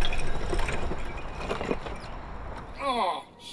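Wheelchair wheels roll and crunch over rough gravel.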